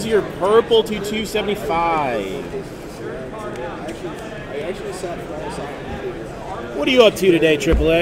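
Trading cards rustle and slide against each other in someone's hands.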